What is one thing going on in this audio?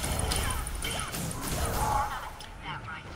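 Fire spells roar and crackle in a fight.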